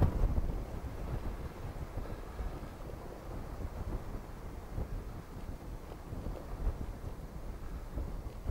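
A distant steam locomotive chuffs rhythmically.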